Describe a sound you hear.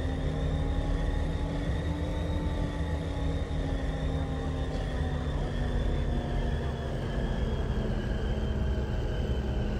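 A hovering vehicle's engine hums steadily with a low rumble.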